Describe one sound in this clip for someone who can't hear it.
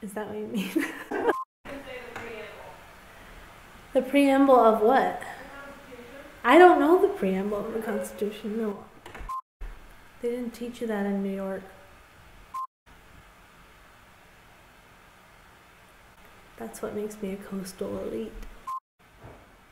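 A young woman speaks close by, calmly and with pauses.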